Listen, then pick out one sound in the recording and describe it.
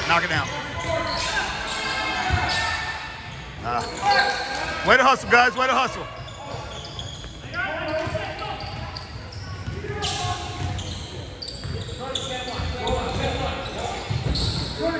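A basketball thumps as it bounces on the court.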